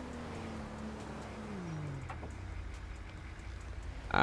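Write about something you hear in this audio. A vehicle door opens.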